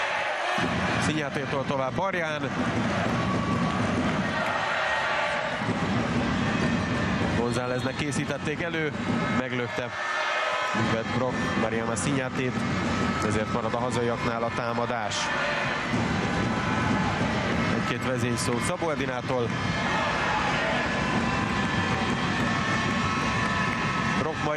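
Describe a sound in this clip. A large crowd cheers and chants steadily in an echoing hall.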